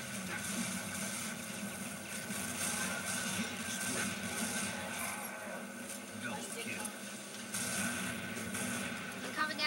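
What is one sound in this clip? Gunfire and explosions crackle from a video game through a loudspeaker.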